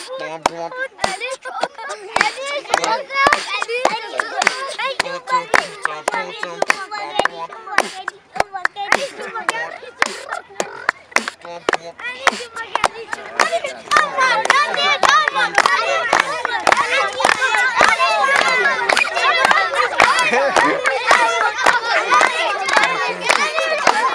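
A man beatboxes with sharp clicks and thumps close by.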